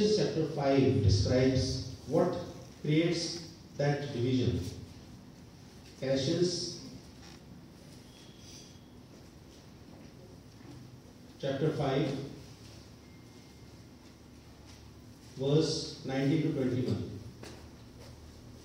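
A man speaks slowly and solemnly into a microphone, heard through loudspeakers in an echoing hall, with long pauses.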